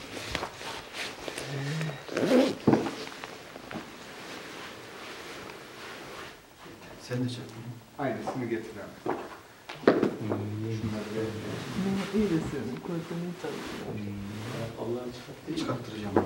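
A heavy rug flaps and thuds onto the floor.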